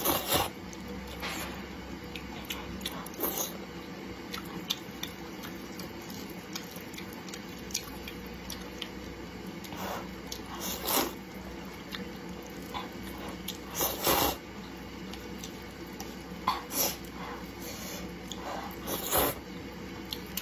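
A young woman slurps noodles loudly and close up.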